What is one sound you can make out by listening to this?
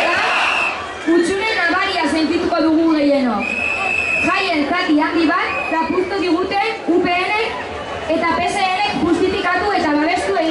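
A young woman speaks firmly into a microphone, amplified over loudspeakers.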